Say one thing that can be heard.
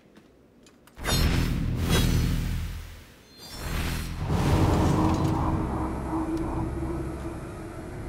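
Electric energy crackles and hums loudly.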